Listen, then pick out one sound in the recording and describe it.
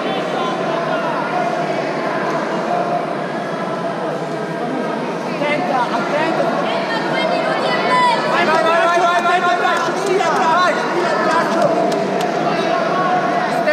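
Many people talk and shout in a large echoing hall.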